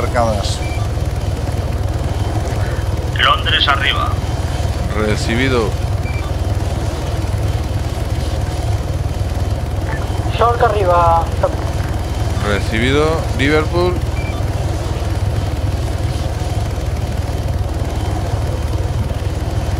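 A helicopter's rotor thumps and roars steadily nearby.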